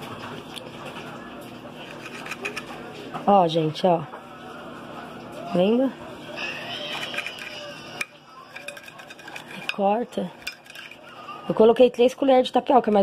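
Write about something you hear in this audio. A knife scrapes and taps against a plate.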